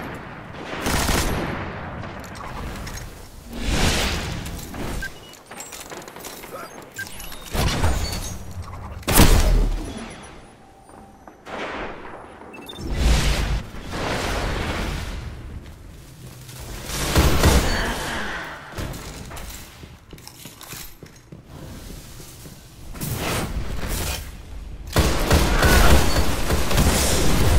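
A handgun fires sharp gunshots.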